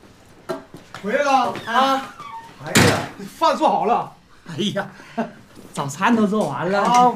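A man speaks loudly and cheerfully nearby.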